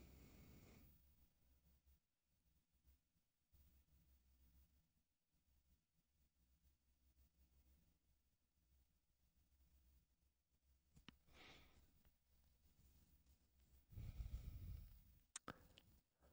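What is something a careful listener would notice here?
A man speaks briefly and quietly into a microphone, with long pauses.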